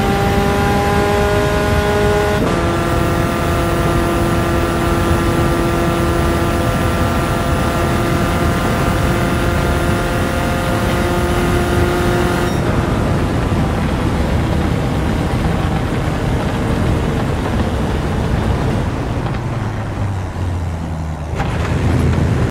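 Tyres rumble on the track surface.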